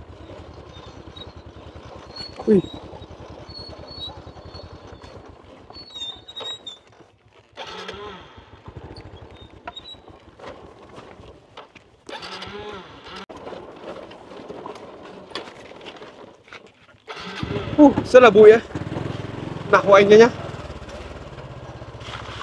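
A motorbike engine putters close by on a bumpy track.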